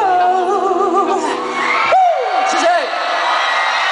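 A young man sings through a microphone over loudspeakers.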